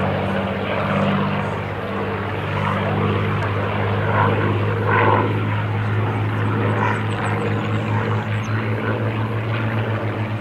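A propeller plane's piston engine drones steadily overhead with a deep, throbbing pulse.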